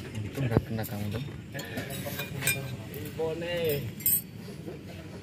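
Metal tools clink and scrape against a car's brake parts.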